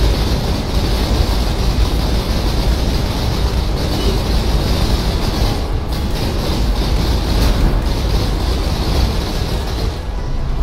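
Magic spells whoosh and crackle in a continuous roar.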